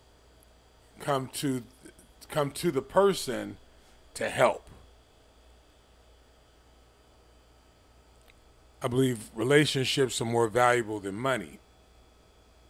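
An elderly man speaks with animation close to a microphone, pausing between phrases.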